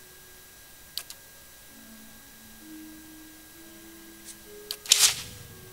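A mouse button clicks a few times.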